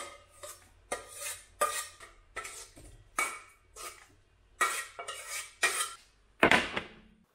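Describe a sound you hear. A spoon scrapes food from a metal pot into a bowl.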